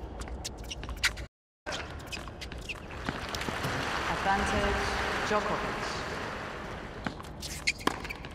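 A tennis ball is struck sharply with a racket, back and forth.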